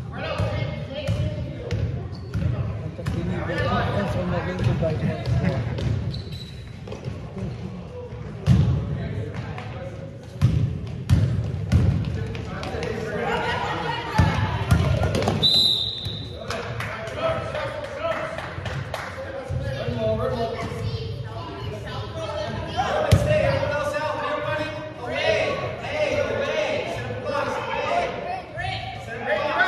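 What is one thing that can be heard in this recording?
Sneakers squeak and thump on a hard court in a large echoing hall.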